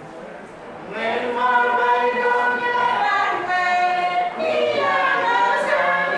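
A group of men and women sing together, loud and close.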